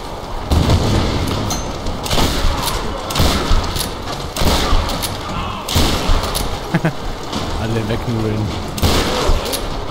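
Gunshots boom repeatedly with a ringing echo.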